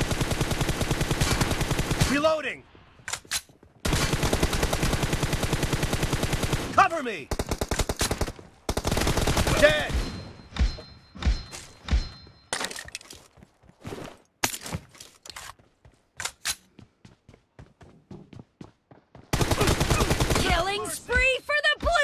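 An automatic rifle fires in long rapid bursts.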